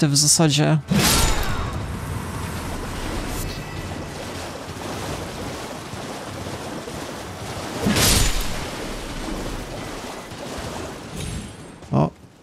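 A horse splashes at a gallop through shallow water.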